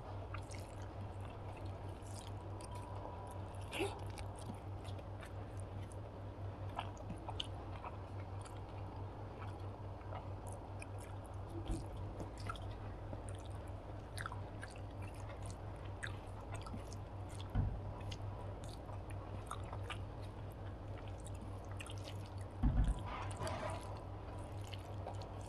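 A woman chews food wetly, close to a microphone.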